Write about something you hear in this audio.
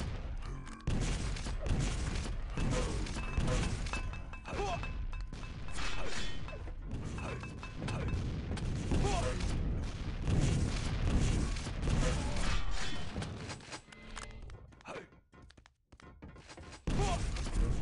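Rockets explode with loud booms.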